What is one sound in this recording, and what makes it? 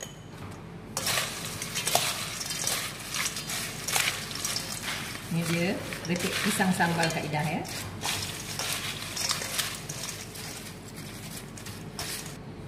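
Crisp chips crunch and rustle as they are tossed with spoons.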